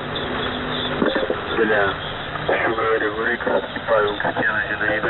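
Warbling radio tones chirp over the static.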